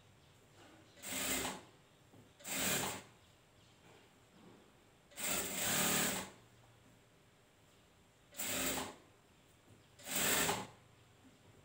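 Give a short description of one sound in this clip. A sewing machine runs in short bursts.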